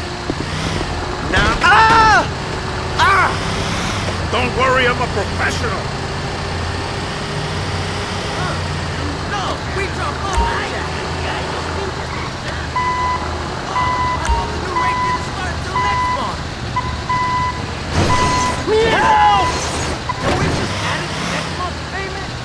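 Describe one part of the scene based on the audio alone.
An engine rumbles steadily as a heavy truck drives along.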